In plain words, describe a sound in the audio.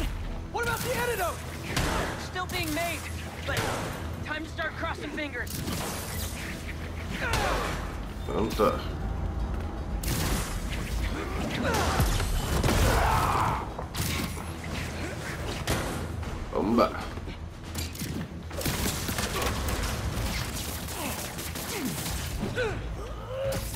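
Heavy blows and impacts thud and crash during a fight.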